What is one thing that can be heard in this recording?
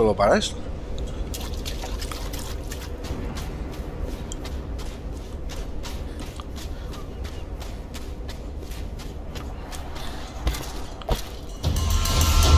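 Quick footsteps run over soft sand.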